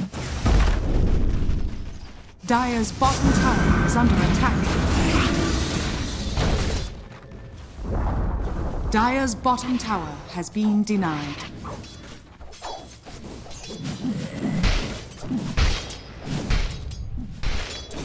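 Game spells crackle and clash in a fantasy battle.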